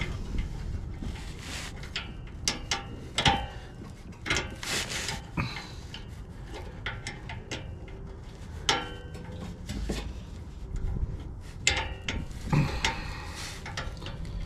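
A metal tool clicks and clanks against an exhaust pipe.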